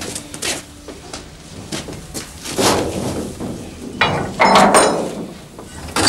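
Liquid sloshes and splashes as it is stirred in a large metal vat.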